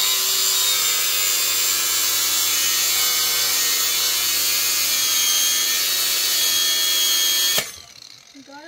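A welding machine buzzes loudly and steadily, then stops abruptly.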